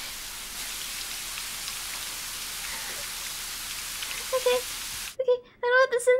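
Water from a shower hisses steadily.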